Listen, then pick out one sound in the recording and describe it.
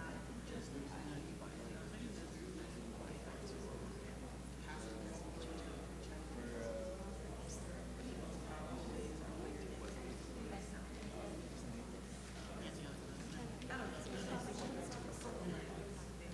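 Several men and women chatter and murmur at a distance in a large, echoing room.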